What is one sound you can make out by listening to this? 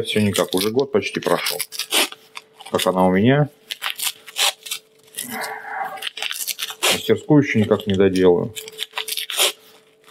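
Tape rips as it is pulled off a roll.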